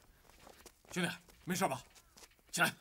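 A man asks a question with concern.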